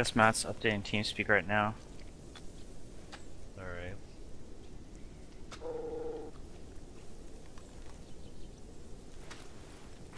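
A person crawls through rustling grass.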